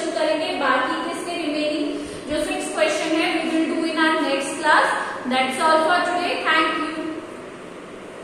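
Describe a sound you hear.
A woman speaks clearly and with animation, close to a microphone.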